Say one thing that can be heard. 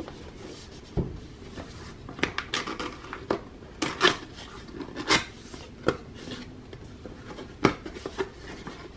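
Cardboard rubs and scrapes as hands handle a box.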